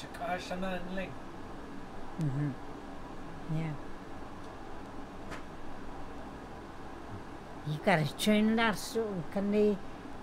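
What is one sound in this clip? An elderly woman speaks quietly and slowly, close by.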